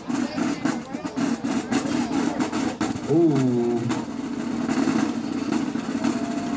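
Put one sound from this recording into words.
A marching band's drums pound in a steady rhythm outdoors.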